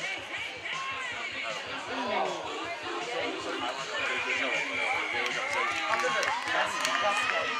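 Spectators chatter nearby in a lively crowd.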